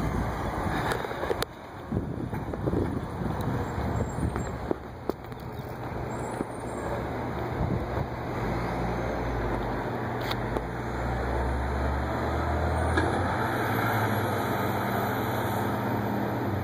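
A bus engine rumbles as the bus drives slowly away.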